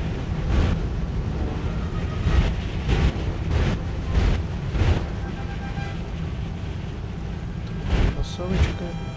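Twin propeller engines drone steadily at idle.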